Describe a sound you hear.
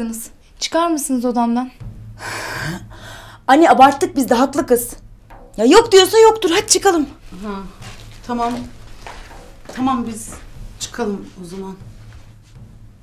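A middle-aged woman speaks close by, pleading.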